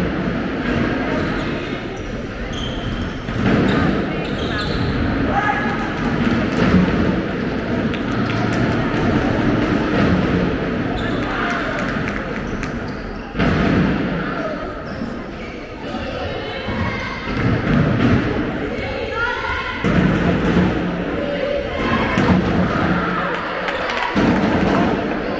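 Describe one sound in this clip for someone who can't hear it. Shoes squeak sharply on a hall floor.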